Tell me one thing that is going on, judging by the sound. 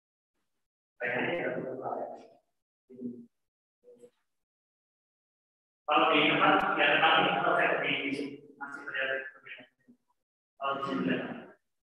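A man explains with animation through an online call microphone, pausing between phrases.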